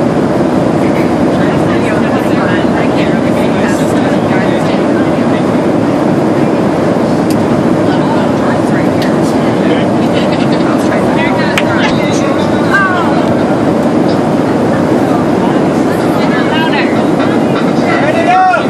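A steady low roar of an aircraft cabin fills the background.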